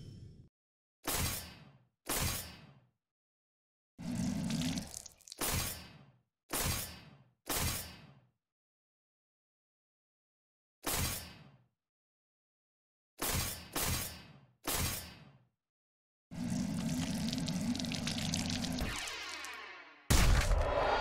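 Game menu sounds chime and whoosh as selections change.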